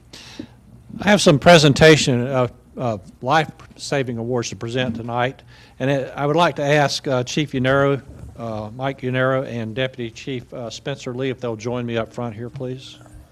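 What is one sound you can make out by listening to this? A middle-aged man speaks calmly into a microphone, reading out.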